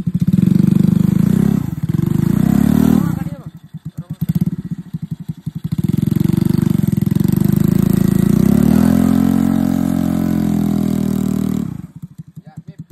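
A small engine revs loudly and sputters up close.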